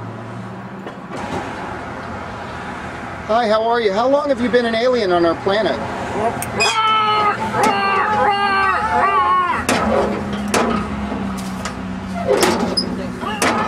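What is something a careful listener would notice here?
A metal mailbox flap creaks and clanks.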